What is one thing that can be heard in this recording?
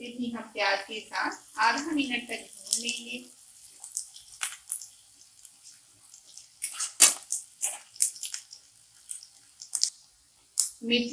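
A spatula scrapes and stirs in a metal pan.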